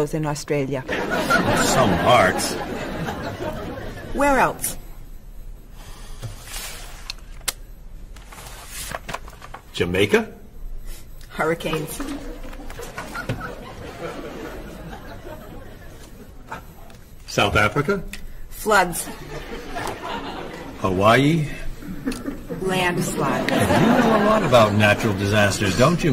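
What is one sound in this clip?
A middle-aged man speaks cheerfully nearby.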